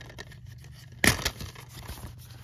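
A plastic disc case clicks open.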